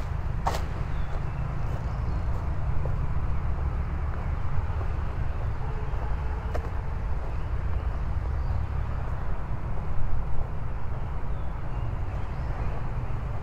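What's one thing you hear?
Leaves rustle in the breeze.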